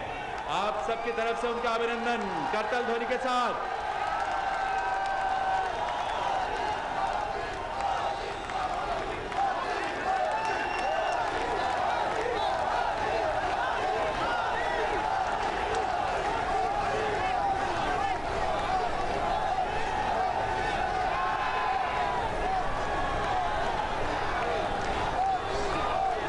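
A large crowd cheers and chants loudly outdoors.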